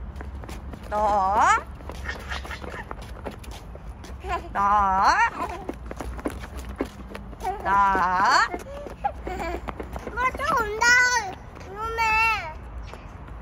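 A young girl calls out in a high, lively sing-song voice close by.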